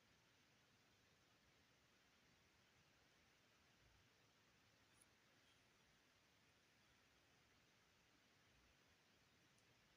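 Small plastic bricks click and rattle softly as fingers handle them.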